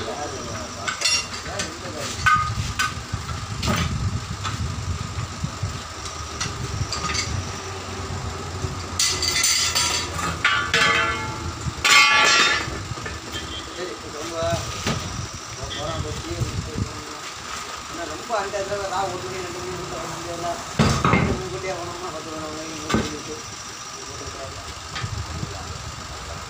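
Metal tools clank and knock against a wheel rim.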